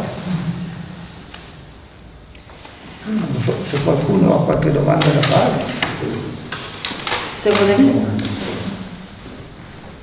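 An elderly man speaks calmly nearby.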